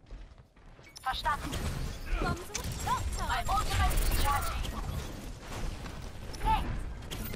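Twin pistols fire in rapid bursts.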